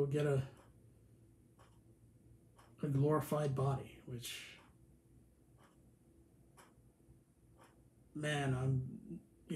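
A young man speaks calmly and close, in short bursts with pauses.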